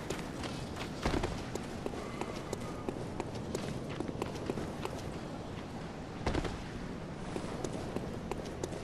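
Footsteps tap quickly on a hard roof and stone walkway.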